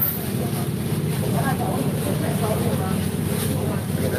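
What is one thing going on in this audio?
Plastic bags rustle.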